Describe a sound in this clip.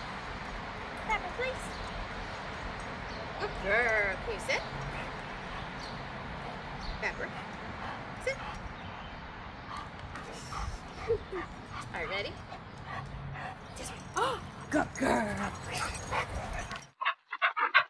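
A young woman talks softly to a dog.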